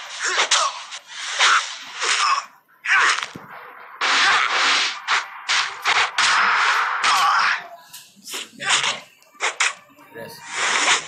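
Swords swish and strike in a video game fight.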